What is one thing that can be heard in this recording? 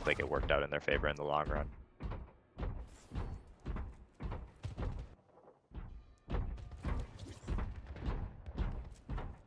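Shots and blasts from a fast game battle pop and bang in quick bursts.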